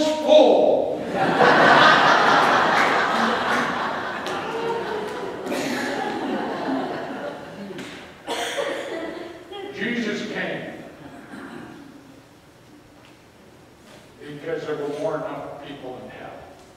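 A man speaks with animation through a microphone in an echoing hall.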